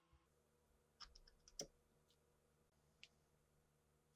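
A wooden block clicks against the metal frets of a guitar neck.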